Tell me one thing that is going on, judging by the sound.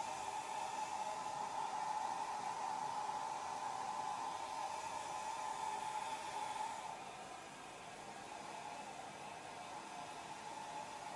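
A hair dryer blows air with a steady whirring hum, growing quieter partway through.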